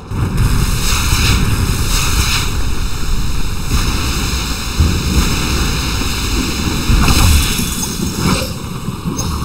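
A magic spell whooshes and crackles in bursts.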